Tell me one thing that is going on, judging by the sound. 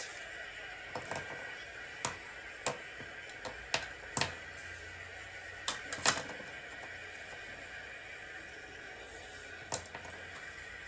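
Cards tap and slide on a tabletop.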